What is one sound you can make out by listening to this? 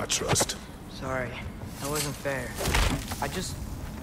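A chest lid creaks open and thuds.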